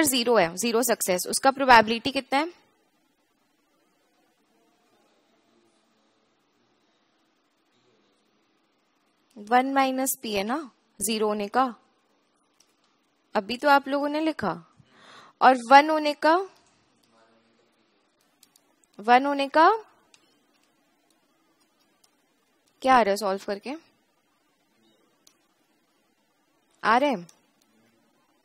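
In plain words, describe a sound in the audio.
A young woman speaks calmly into a headset microphone, in short phrases with pauses.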